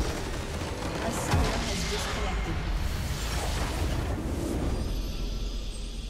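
Magical combat effects whoosh and crackle in a fight.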